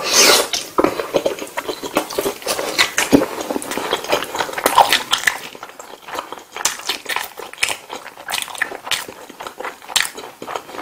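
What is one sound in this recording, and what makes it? A man chews wet food noisily, close to the microphone.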